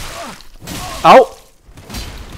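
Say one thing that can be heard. Metal blades clash with a loud ringing clang.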